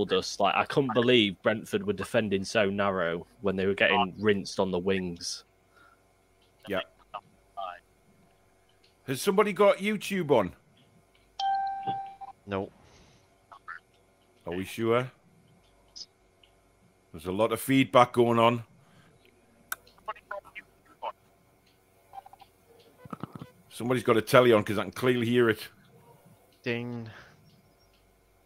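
A man speaks with animation through an online call, pausing often.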